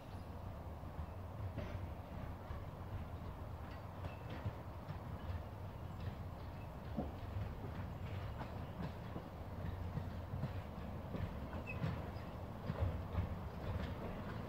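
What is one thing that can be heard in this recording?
A small steam train chugs closer, puffing steadily.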